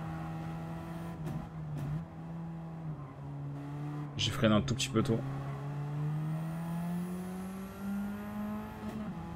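A racing car engine drones steadily, its pitch shifting as it changes gear.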